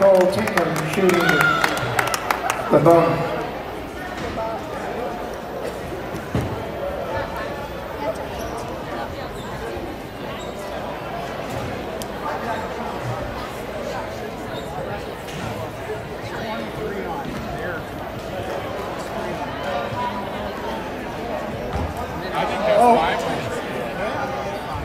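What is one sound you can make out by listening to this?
Spectators cheer loudly.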